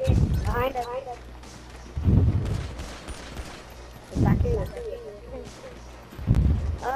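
Pistol shots ring out with loud booming thuds.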